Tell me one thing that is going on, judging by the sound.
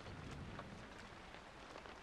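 Footsteps echo softly on a stone floor.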